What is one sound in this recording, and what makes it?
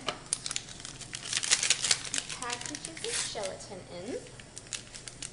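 A paper packet crinkles and tears.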